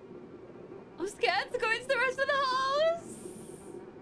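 A young woman shrieks loudly, close to a microphone.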